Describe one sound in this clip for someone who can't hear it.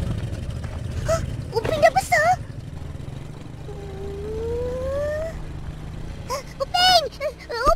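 A young boy speaks and calls out with surprise.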